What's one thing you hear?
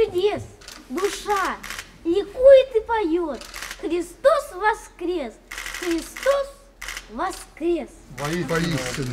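A young boy recites expressively in a high voice nearby.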